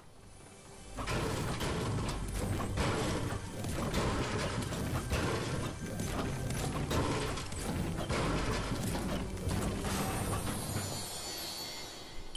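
A pickaxe clangs repeatedly against a metal container.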